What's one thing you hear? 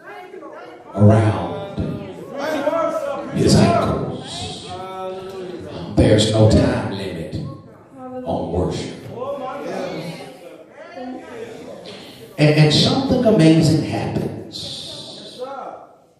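A man preaches with animation into a microphone, heard through loudspeakers in a large room.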